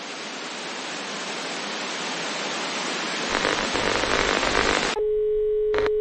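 Television static hisses loudly and steadily.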